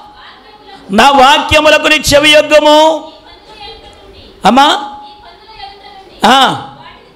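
An elderly man speaks with animation into a microphone, heard through loudspeakers with some echo.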